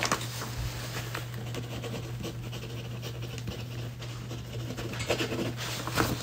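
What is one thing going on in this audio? A felt-tip marker scratches softly across paper.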